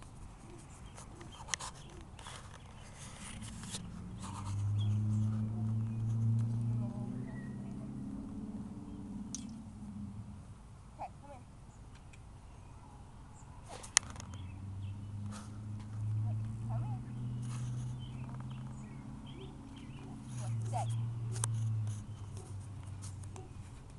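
A young girl talks softly to a dog nearby.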